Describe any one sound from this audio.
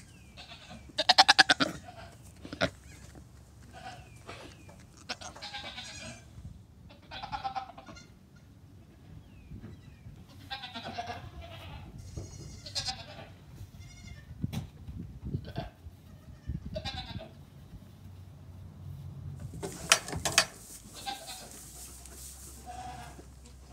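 A young goat bleats in short high cries.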